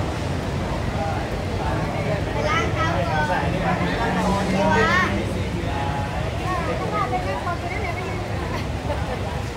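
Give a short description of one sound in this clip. A crowd of people chatters nearby, outdoors.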